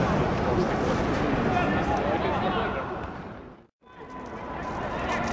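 A crowd of spectators murmurs and calls out in a large open stadium.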